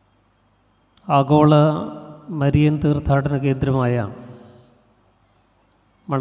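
A middle-aged man chants melodically through a microphone with a slight echo.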